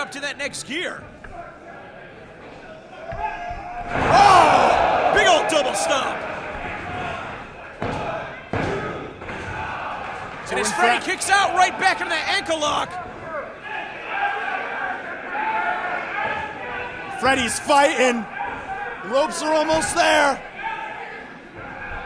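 Spectators shout and yell.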